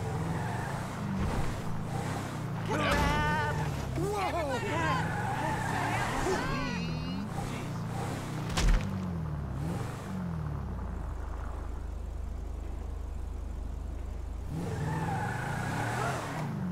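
An SUV engine hums and revs as the SUV drives.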